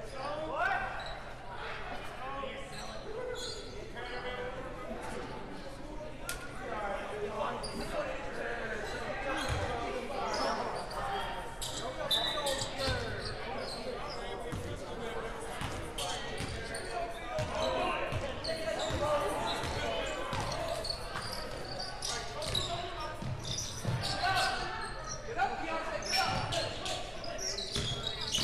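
Sneakers squeak on a gym floor in a large echoing hall.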